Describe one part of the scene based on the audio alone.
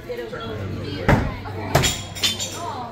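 An axe thuds sharply into a wooden target.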